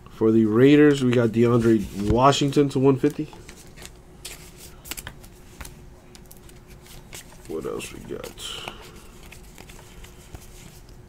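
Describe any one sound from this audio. Trading cards rustle and flick softly between fingers.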